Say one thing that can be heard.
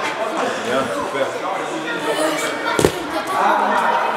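A child lands with a thump on a soft mat.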